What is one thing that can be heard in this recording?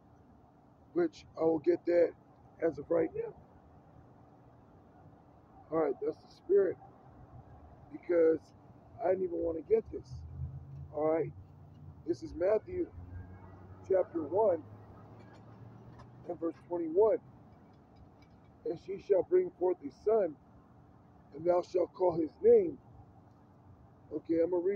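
A man reads aloud in loud, measured bursts outdoors, close by.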